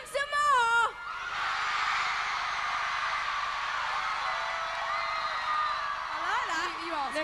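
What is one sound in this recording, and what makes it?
A large crowd cheers and screams in a big echoing hall.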